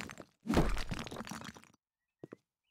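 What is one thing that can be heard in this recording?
A heavy hammer smashes through a brick wall with a crumbling crash.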